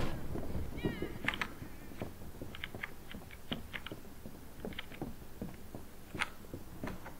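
Footsteps thud steadily on a wooden floor in an echoing hall.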